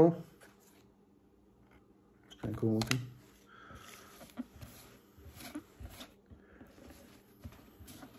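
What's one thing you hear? Trading cards flick and rustle as they are dealt onto a table.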